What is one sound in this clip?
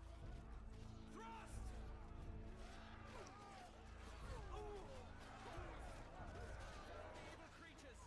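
Weapons clash and clang in a large battle.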